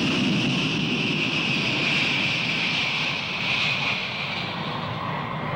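Jet engines roar loudly as an airliner races down a runway.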